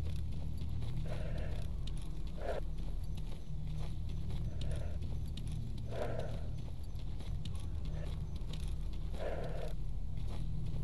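Footsteps crunch slowly through grass and gravel.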